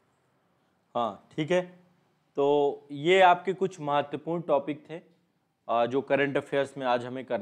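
A man speaks calmly and steadily into a close microphone.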